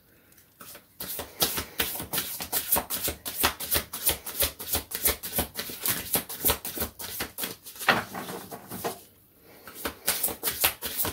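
Cards are shuffled with rapid, crisp flicks.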